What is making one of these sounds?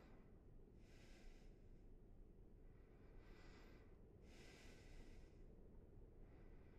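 A sheet of paper rustles in someone's hands.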